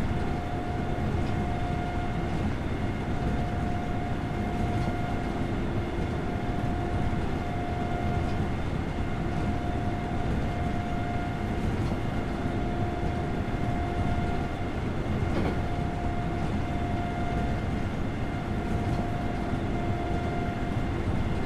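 A train's motor hums steadily as the train runs along the rails.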